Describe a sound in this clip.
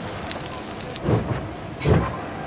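A steam locomotive's wheels clank and rumble on the rails.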